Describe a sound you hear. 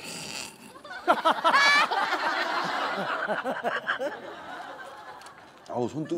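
A woman laughs loudly into a microphone.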